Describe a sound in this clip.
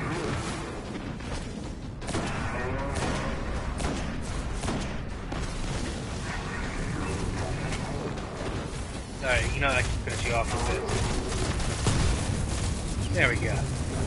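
Heavy gunshots fire in rapid bursts.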